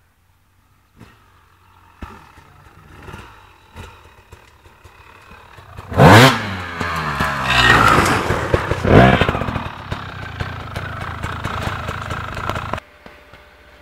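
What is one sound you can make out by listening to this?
A dirt bike engine revs loudly as it climbs past close by.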